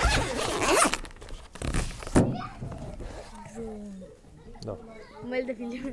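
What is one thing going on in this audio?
A case's latch clicks open.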